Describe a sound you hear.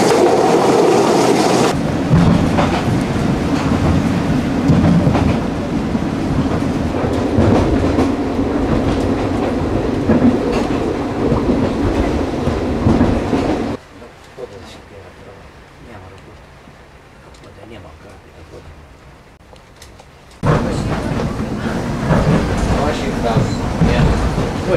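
A train rattles and rumbles steadily along the tracks.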